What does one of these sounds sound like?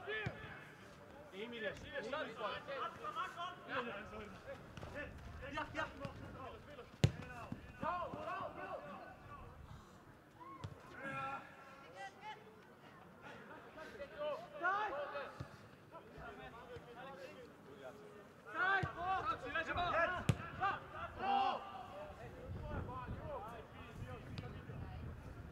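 Men shout to each other across an outdoor football pitch.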